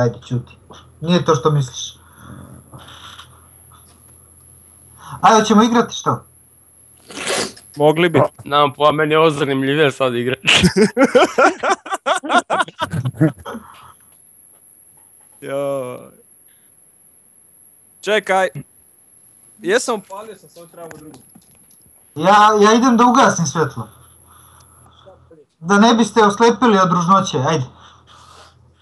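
Several men talk and laugh with animation, heard through an online call.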